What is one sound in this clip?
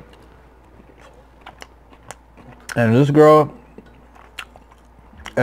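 A fork clicks against food on a wooden board.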